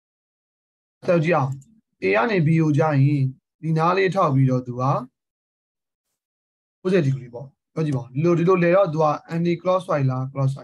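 A young man speaks calmly and explains into a close microphone.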